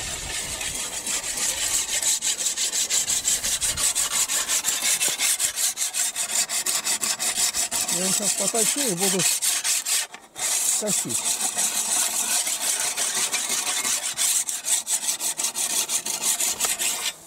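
A hand saw cuts rapidly back and forth through wood.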